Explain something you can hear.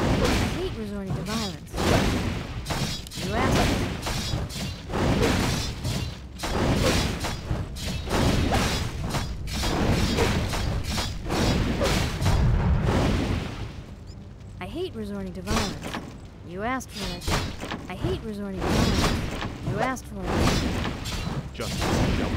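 Swords clash and thud as small figures fight.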